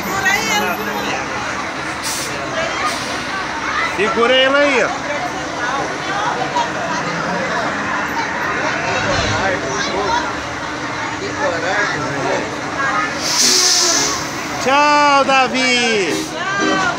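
A crowd chatters loudly all around.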